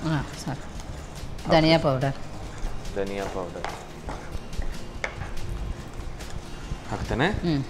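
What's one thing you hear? Food sizzles in a pan.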